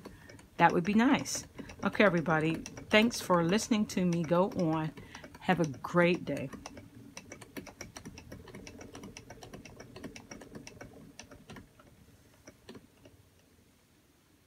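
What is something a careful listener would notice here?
A wooden spinning wheel whirs softly as it turns.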